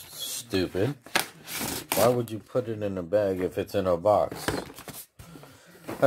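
A padded paper envelope rustles and crinkles as it is handled.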